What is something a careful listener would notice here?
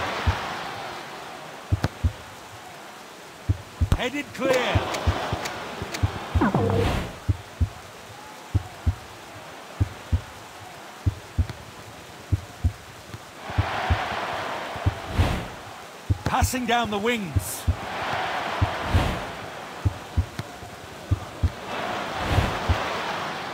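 A stadium crowd roars and cheers in swells.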